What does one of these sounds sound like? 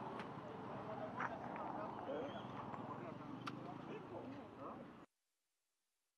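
Several men talk over one another close by, outdoors.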